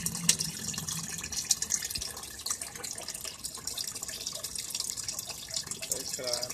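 Water pours from a hose and splashes and bubbles into a tank of water.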